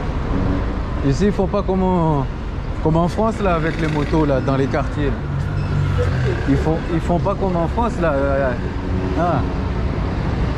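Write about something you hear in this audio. Young women chat nearby as they pass.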